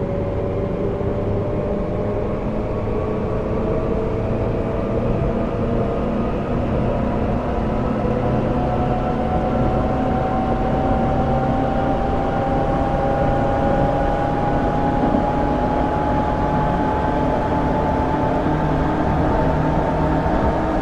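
An electric train motor whines steadily, rising slowly in pitch as the train speeds up.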